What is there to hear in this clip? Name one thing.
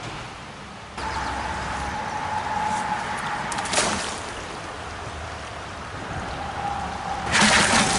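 A river flows and rushes steadily.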